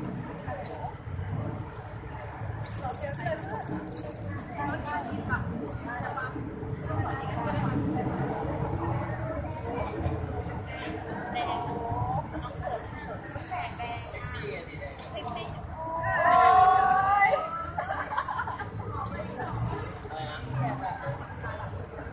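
Traffic hums steadily on a nearby street.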